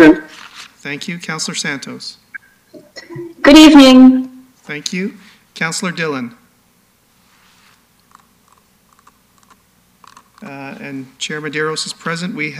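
A man speaks calmly into a microphone, in pauses.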